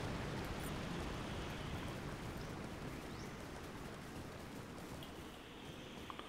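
A horse's hooves clop along a stone path.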